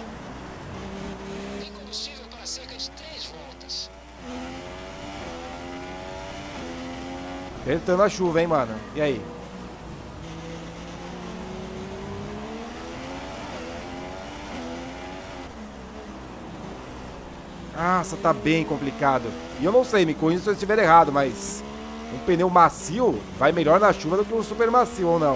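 A racing car engine whines and revs up and down through the gears.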